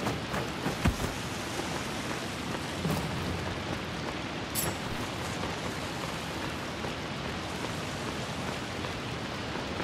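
Footsteps tread softly on the ground.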